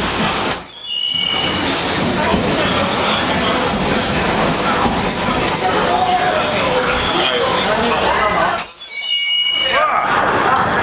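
Train brakes squeal sharply.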